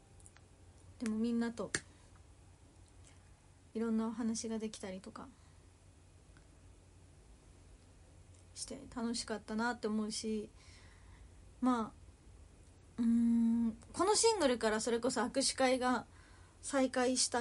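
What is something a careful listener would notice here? A young woman speaks softly and with animation, close to a microphone.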